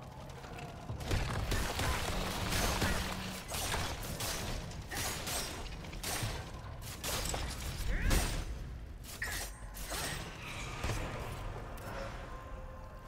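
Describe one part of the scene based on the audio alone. Swords clash and clang with sharp metallic strikes.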